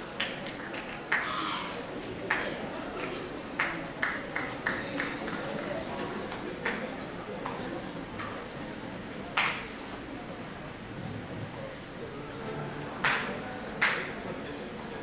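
Objects knock and bump on a stage in a large hall.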